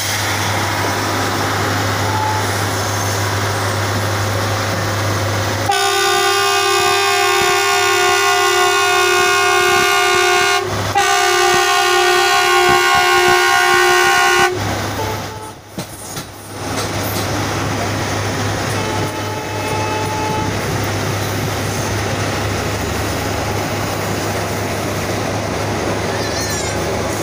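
A large diesel engine hums steadily close by.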